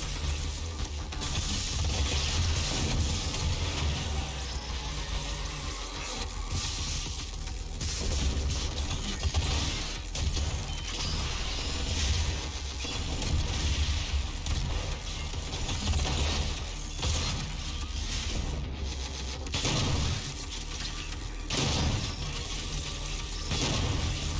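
Monsters roar and growl in a video game.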